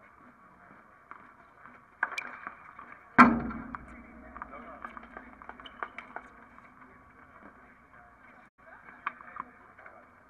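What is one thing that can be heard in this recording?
Tennis shoes squeak and scuff on the hard court.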